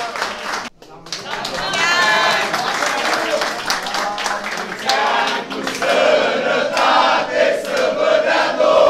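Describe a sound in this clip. Several men clap their hands.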